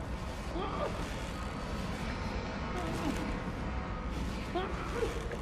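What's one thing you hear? Slow footsteps shuffle across a floor.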